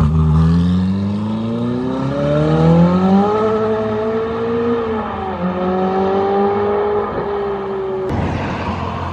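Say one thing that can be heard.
A sports car engine roars as the car accelerates away, with its pitch rising through the gear changes.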